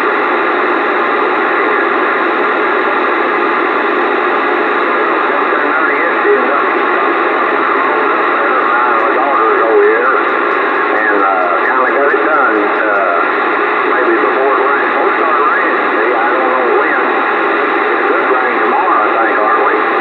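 A radio receiver hisses with loud, steady static.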